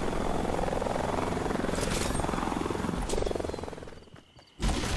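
A helicopter's rotor whirs and chops steadily close by.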